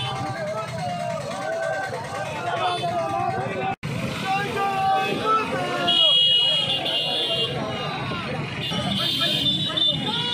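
A crowd of men chants and shouts loudly outdoors.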